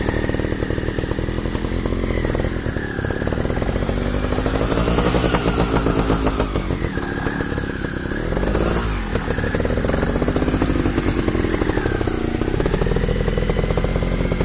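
A motorbike engine revs up and down close by.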